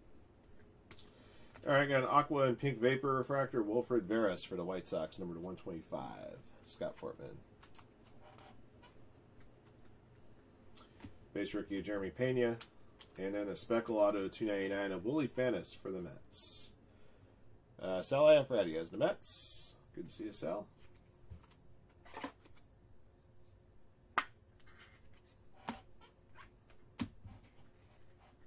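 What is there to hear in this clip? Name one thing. Trading cards slide and rustle between fingers.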